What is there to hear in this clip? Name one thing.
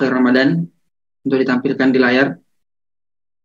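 A young man speaks calmly into a microphone over an online call.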